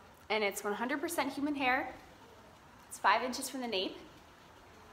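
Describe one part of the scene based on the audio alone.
A young woman speaks close up, lively and expressive.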